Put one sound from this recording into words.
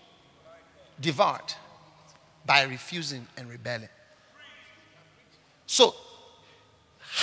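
A man preaches with animation through a microphone and loudspeakers in a large echoing hall.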